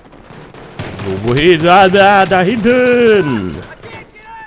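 A rifle fires rapid bursts of shots.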